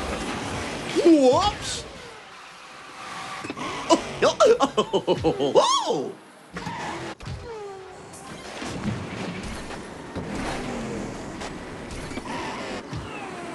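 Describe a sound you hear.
A racing kart engine whines and revs as it speeds along.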